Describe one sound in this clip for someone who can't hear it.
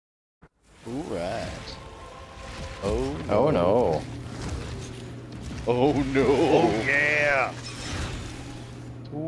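Monsters growl and shriek.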